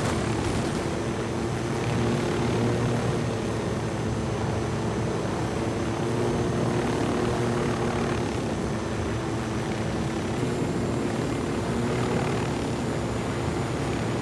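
A helicopter's rotor thumps and its engine roars steadily close by.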